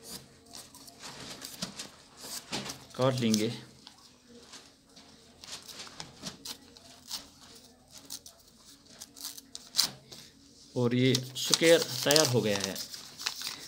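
Paper rustles and crinkles as it is folded by hand.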